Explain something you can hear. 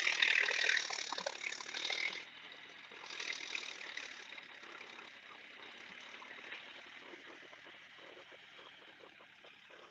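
Wet mud churns and splashes under tractor wheels.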